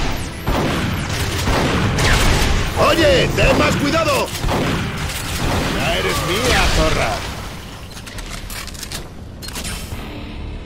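Gunshots and energy blasts fire in quick bursts.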